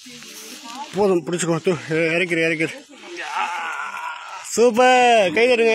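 A man talks loudly nearby.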